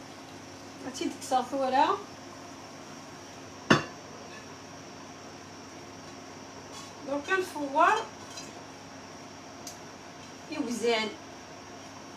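A metal pan scrapes and squeaks against a pot rim.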